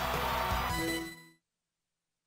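A cheerful electronic jingle plays briefly.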